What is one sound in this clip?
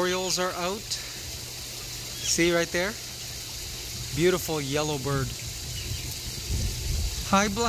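A bird calls out in short, clear, rising whistles.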